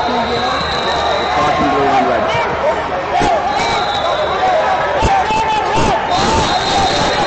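A crowd of people chatters and calls out in a large echoing hall.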